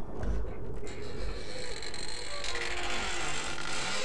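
An iron gate creaks slowly open.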